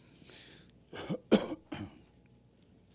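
A man coughs into a microphone.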